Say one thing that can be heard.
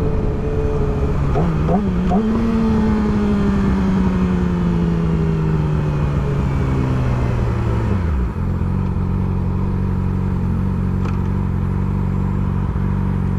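A motorcycle engine revs up, then drones steadily while cruising and drops in pitch as it slows.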